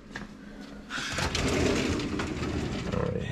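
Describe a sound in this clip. A metal drawer slides open with a scraping rumble.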